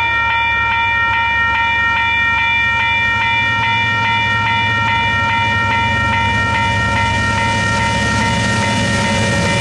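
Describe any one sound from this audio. A level crossing bell rings rapidly and steadily.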